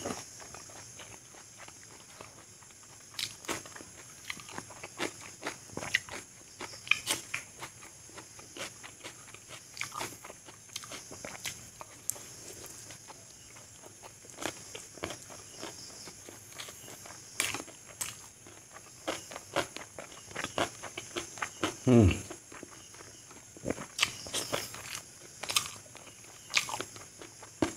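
A man chews food wetly and noisily close to a microphone.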